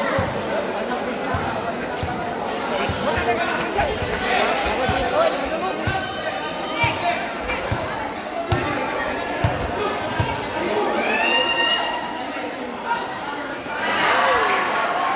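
A large crowd chatters and cheers throughout.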